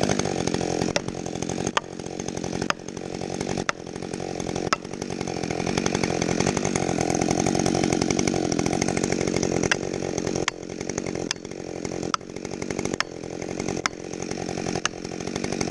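An axe pounds plastic felling wedges into a tree trunk.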